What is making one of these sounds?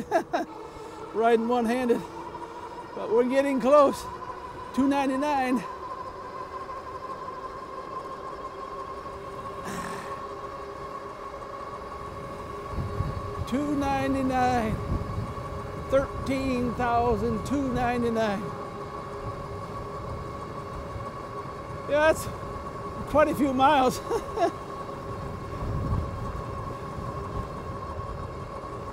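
An electric bike motor whines steadily.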